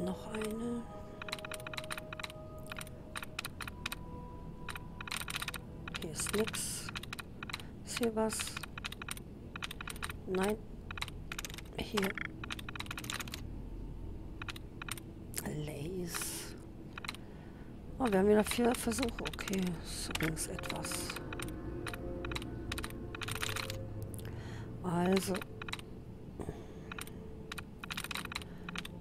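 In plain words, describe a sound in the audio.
Short electronic clicks tick rapidly from a computer terminal.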